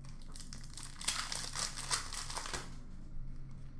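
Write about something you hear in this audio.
A foil card pack crinkles and tears as hands open it.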